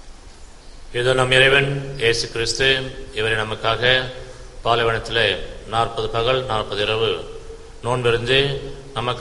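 An elderly man recites slowly and solemnly through a microphone.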